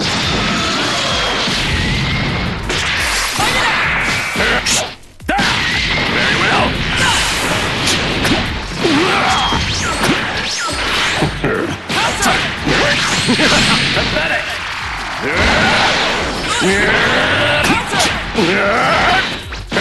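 Punches and kicks land with sharp, rapid impacts.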